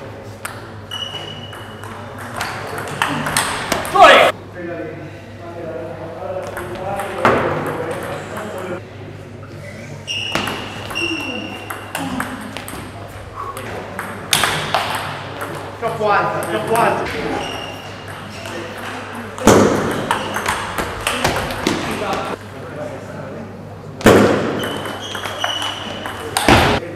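Players' shoes squeak sharply on the floor.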